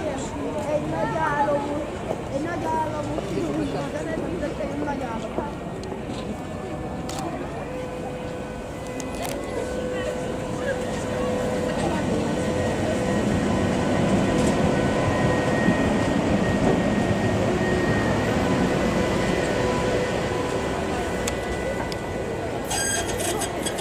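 A tram rolls past close by with a rising and fading rumble.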